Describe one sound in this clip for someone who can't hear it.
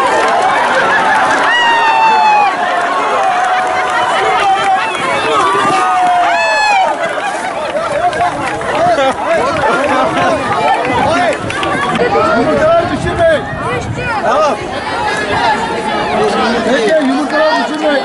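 A crowd of people cheers and shouts outdoors.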